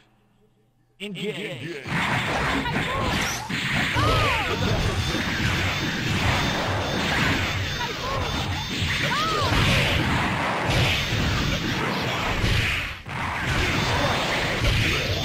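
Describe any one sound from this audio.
Video game punches and energy blasts crash and zap rapidly.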